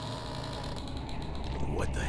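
Footsteps walk slowly on a hard floor.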